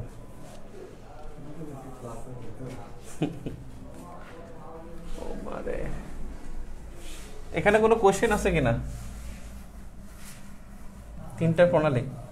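A man speaks calmly and clearly, like a teacher explaining.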